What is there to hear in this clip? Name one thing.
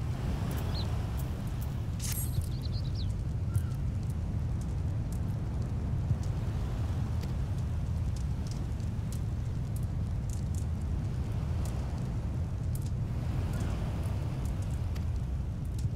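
A fire crackles in a torch.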